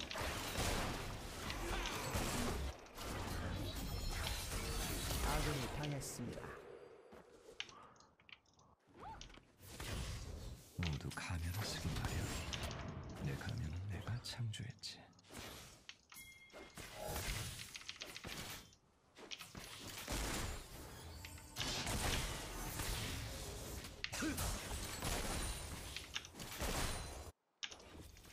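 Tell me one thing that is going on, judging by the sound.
Video game spell and attack effects crackle and burst.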